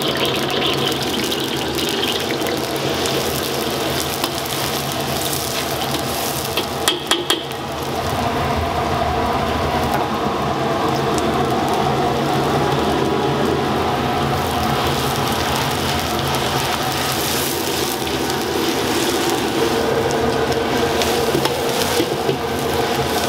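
Hot oil sizzles loudly in a wok.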